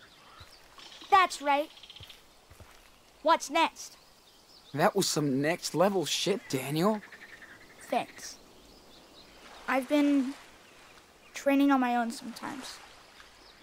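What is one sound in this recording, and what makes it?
A boy speaks calmly, close by.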